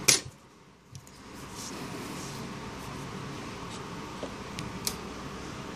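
Fingers click and tap small phone parts.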